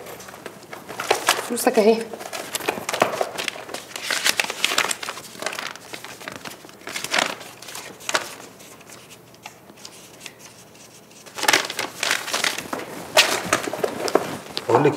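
Paper rustles and crinkles.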